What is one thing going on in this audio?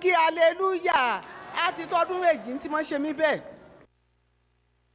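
An elderly woman sings loudly and passionately into a microphone.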